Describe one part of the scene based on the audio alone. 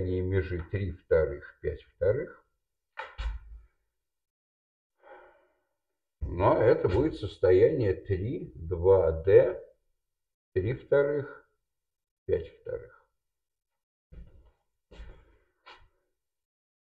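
A man lectures calmly nearby, pausing often.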